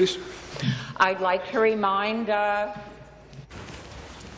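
An elderly woman speaks with animation into a microphone in a large hall.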